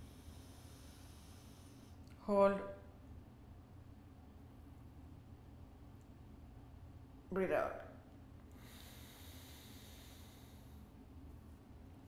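A woman breathes slowly in and out through her nose, close by.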